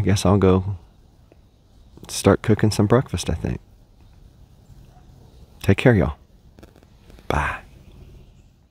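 A man talks calmly nearby, outdoors in a quiet wood.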